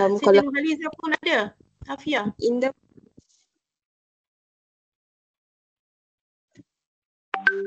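A young woman speaks cheerfully through an online call.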